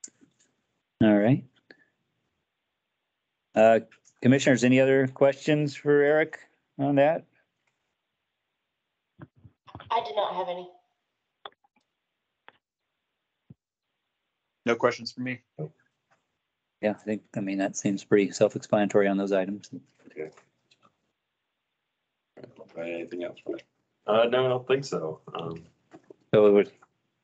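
An adult man speaks calmly in short phrases over an online call.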